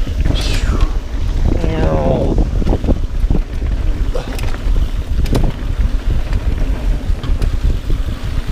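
Wind rumbles loudly past the rider at speed.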